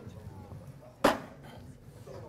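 A board eraser knocks against a chalkboard ledge.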